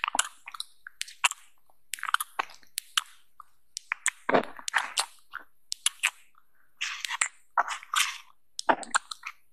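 Fingers tap and click on a small plastic bottle cap up close.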